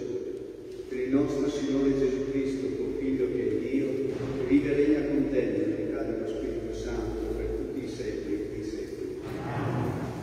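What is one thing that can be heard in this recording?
An elderly man chants slowly through a microphone in a large echoing hall.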